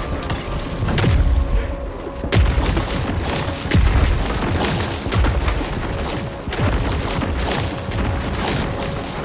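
Gunshots boom in quick succession.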